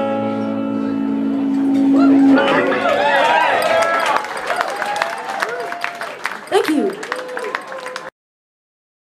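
A young woman sings into a microphone.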